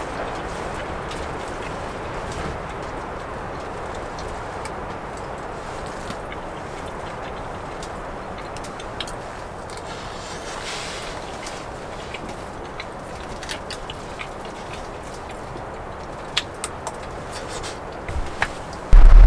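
A metal spoon clinks and scrapes against a pan.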